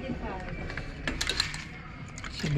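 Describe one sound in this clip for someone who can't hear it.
Wooden hangers clack against each other as they are pushed along a rail.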